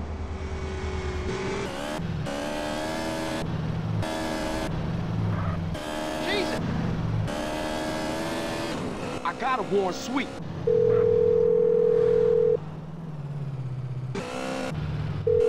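A motorcycle engine revs up and down as the bike speeds along.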